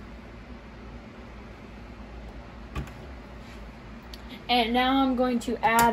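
A plastic jug is lifted and set down on a table.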